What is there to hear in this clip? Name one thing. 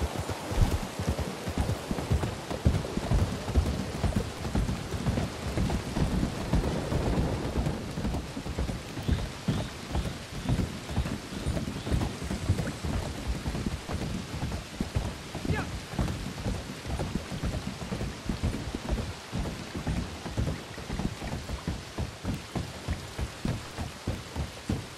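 Horse hooves clop steadily on wooden planks.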